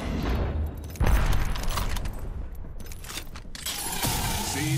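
An ability crackles with an electric burst.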